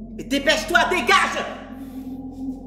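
A woman speaks cheerfully and laughs close by.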